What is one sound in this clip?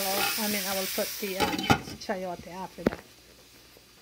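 A glass lid clinks onto a pan.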